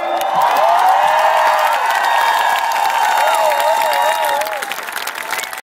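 A large crowd sings along loudly.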